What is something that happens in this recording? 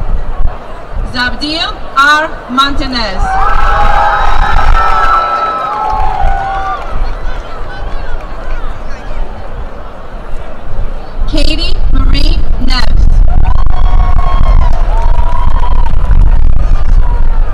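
A large crowd cheers and whoops outdoors.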